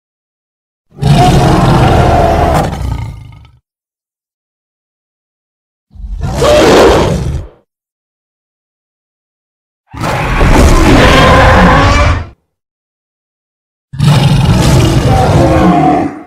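A gorilla roars loudly in short bursts with pauses between.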